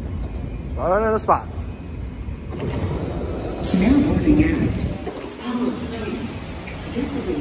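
A subway train hums and rumbles steadily.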